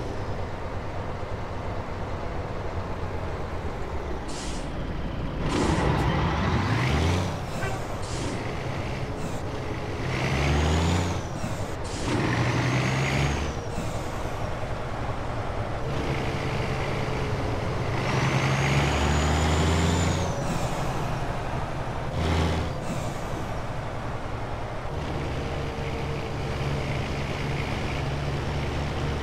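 A truck engine rumbles steadily and changes pitch as the truck shifts gears.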